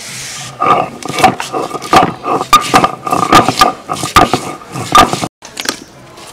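A stone roller grinds and scrapes on a grinding stone.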